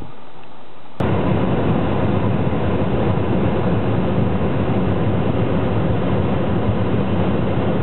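A car engine rumbles steadily from inside the car.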